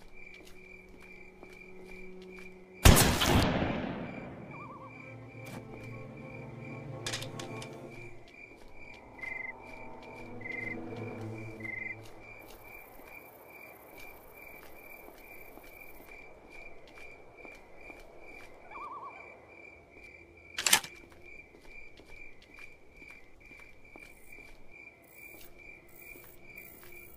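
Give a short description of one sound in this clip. Footsteps tap steadily on a roof.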